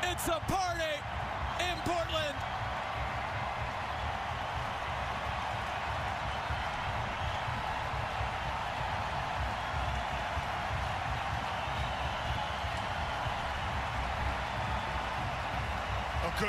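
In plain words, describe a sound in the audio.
A large stadium crowd cheers and roars loudly.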